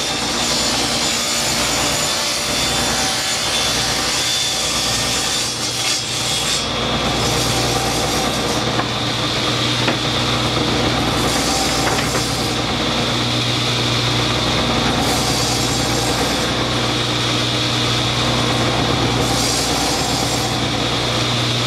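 A table saw whines steadily as it cuts through a wooden board.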